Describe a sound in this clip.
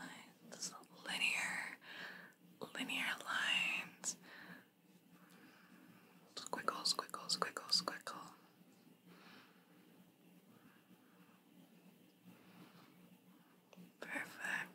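A young woman whispers softly, close to a microphone.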